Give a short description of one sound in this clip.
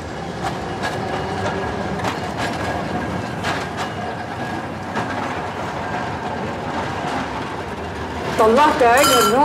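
A tram rolls along its rails.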